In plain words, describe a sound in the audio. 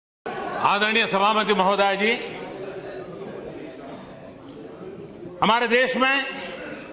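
An elderly man speaks loudly and forcefully into a microphone.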